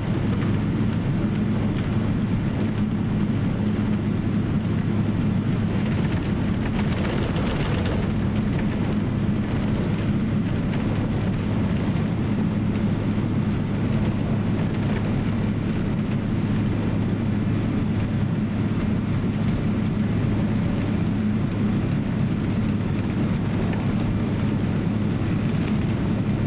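A jet engine drones steadily in a plane cabin.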